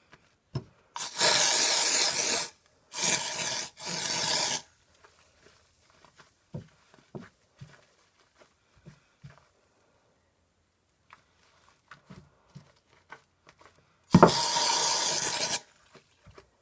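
A can is shaken hard in short bursts.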